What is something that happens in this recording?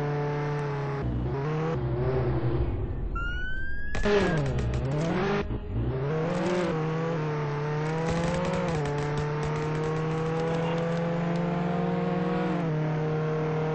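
A video game car engine hums, its pitch dipping and rising as the car turns.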